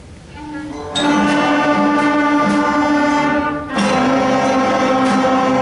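A large school band plays loudly in an echoing hall.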